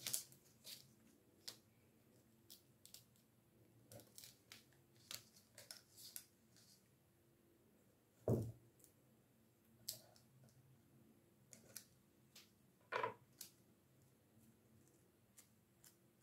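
A knife taps and scrapes on a wooden board.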